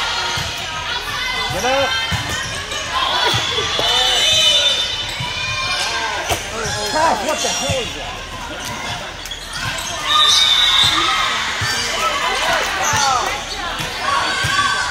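Young women shout and call to each other in a large echoing hall.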